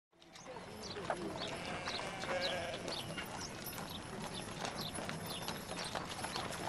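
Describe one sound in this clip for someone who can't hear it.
A flock of sheep and goats bleats nearby.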